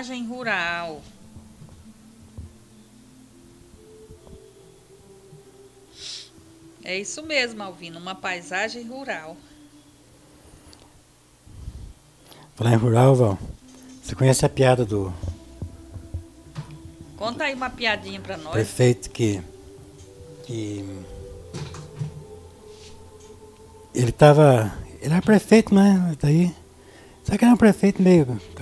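An elderly man talks calmly into a close microphone.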